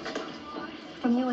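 A woman speaks calmly through a small television speaker.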